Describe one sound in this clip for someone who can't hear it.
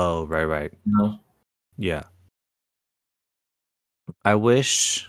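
Men talk casually over an online call, heard through microphones.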